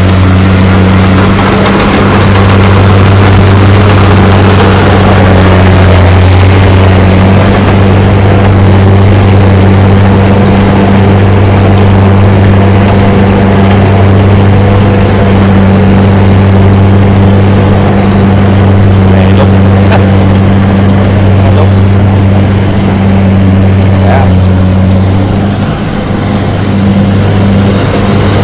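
A combine harvester's cutter rattles through the crop.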